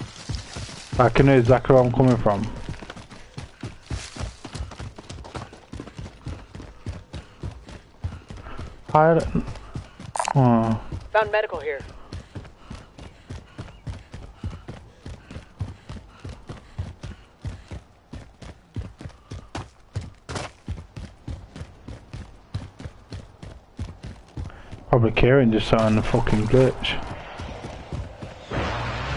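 Footsteps run quickly and steadily on hard ground.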